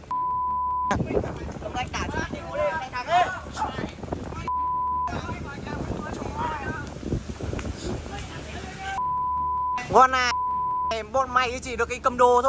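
Young boys shout and talk excitedly outdoors.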